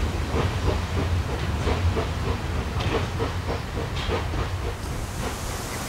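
A railway wagon rolls past, its wheels clattering rhythmically over the rails.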